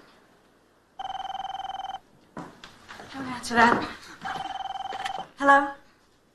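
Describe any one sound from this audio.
A telephone ringing tone sounds through a handset earpiece.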